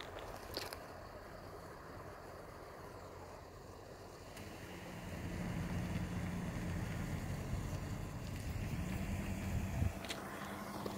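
A train rumbles along the tracks, approaching.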